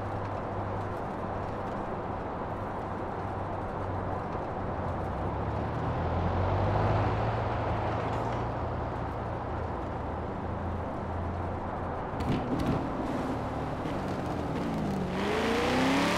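A car engine hums steadily while driving along a road.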